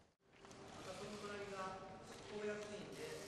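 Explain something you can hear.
A man speaks through a loudspeaker in a large hall.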